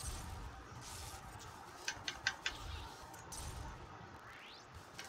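Sharp battle effects crackle and clang.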